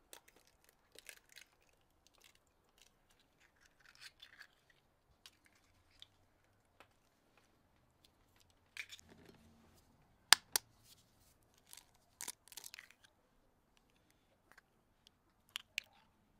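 Eggshells crack and snap with sharp clicks.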